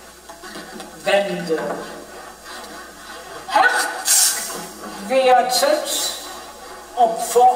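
A woman sings closely into a microphone, with a wavering voice.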